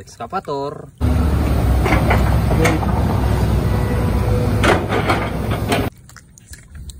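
An excavator engine rumbles loudly close by.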